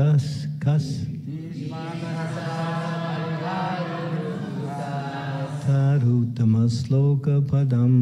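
A harmonium plays sustained chords.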